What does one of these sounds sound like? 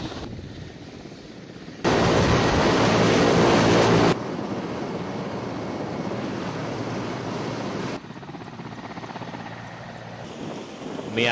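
A helicopter's rotor thumps and its engine whines.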